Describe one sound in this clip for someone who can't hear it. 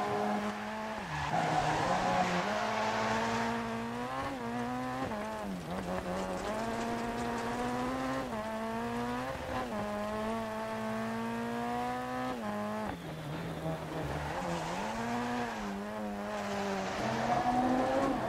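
Tyres hiss and spray through wet gravel as a car slides.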